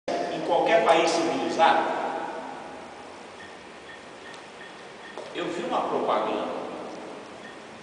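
An elderly man speaks emphatically nearby.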